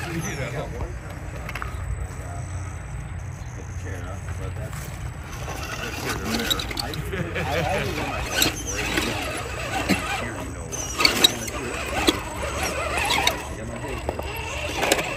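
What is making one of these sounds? A small electric motor whirs steadily as a toy truck crawls.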